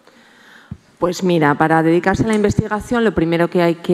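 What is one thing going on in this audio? A woman speaks calmly into a microphone, heard over loudspeakers.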